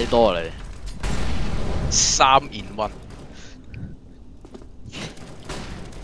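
A smoke grenade hisses nearby.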